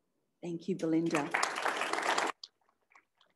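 People applaud briefly.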